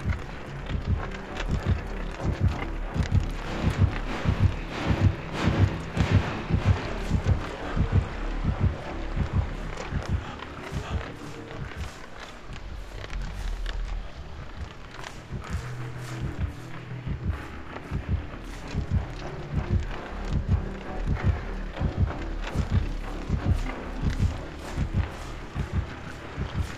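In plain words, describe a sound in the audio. Footsteps run quickly through grass and over the ground.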